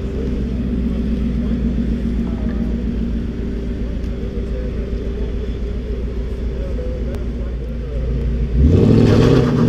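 A sports car engine idles with a deep rumble.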